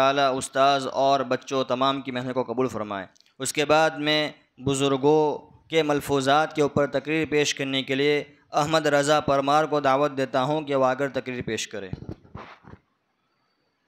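A man chants melodiously through a loudspeaker.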